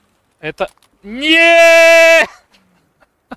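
A man lets out a long, drawn-out yell into a microphone.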